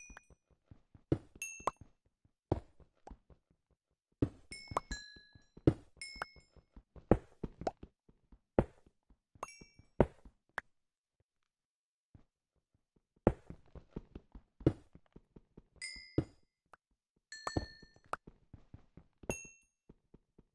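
Short high pops sound as small items are picked up.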